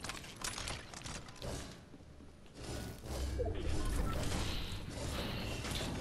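Footsteps patter quickly across a wooden floor.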